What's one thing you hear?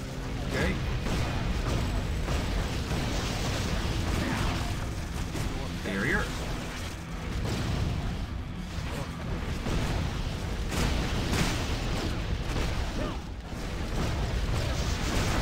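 Fiery spells blast and crackle in quick bursts.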